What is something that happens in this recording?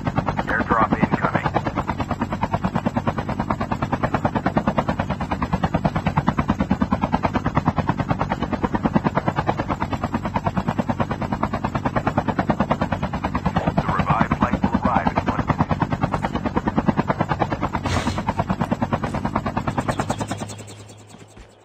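A helicopter's rotor chops loudly and steadily.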